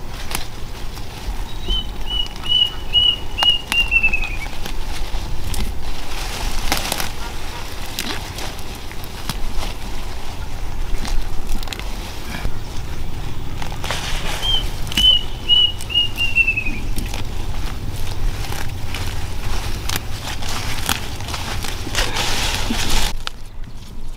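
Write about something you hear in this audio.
Leaves rustle as plants are pulled up by hand.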